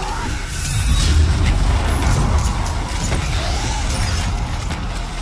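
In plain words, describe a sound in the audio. Electric energy crackles and hums around a glowing shield.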